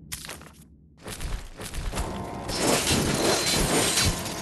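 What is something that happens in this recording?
A low, rumbling game soundscape swells and grows loud.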